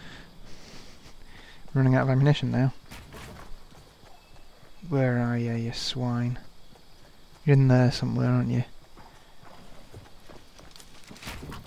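Footsteps patter quickly on grass and pavement.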